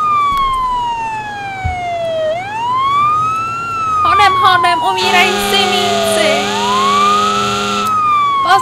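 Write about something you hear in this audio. A fire engine siren wails, sweeping slowly up and down.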